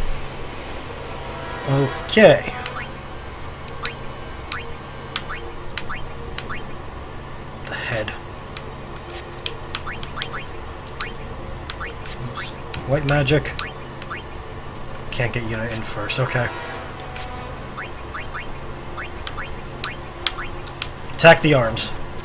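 Short electronic menu blips sound again and again.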